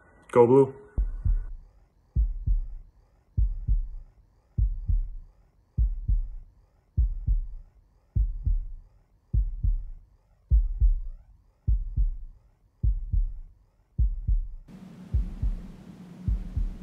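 A deep electronic beat thumps at a steady pace from loudspeakers.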